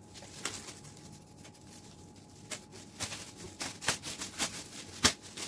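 A thin plastic sheet crinkles and rustles in short bursts.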